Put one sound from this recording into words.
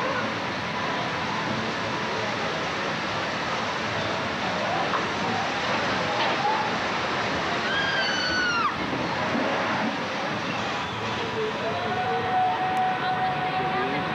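Water rushes and splashes steadily outdoors.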